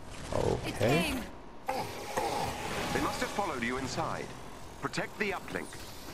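Laser beams buzz and crackle.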